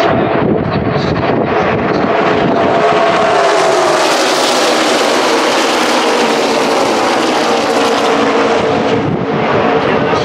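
A pack of race cars roars past up close, engines droning loudly and then fading away.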